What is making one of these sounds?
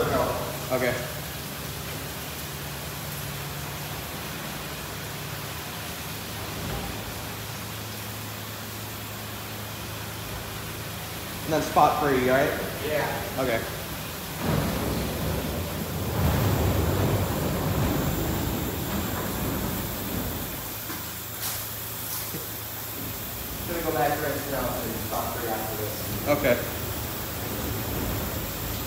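Water sprays and splashes onto a car.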